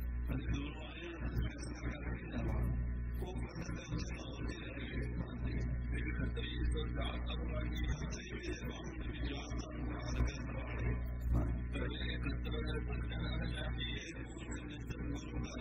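An elderly man speaks steadily and calmly through a microphone.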